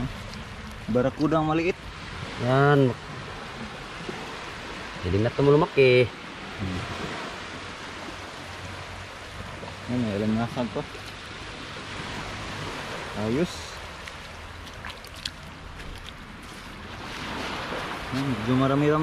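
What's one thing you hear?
A man speaks in short bursts close by.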